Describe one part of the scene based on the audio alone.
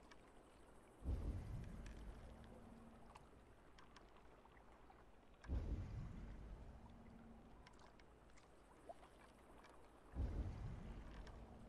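A bow creaks and an arrow is loosed with a deep thump.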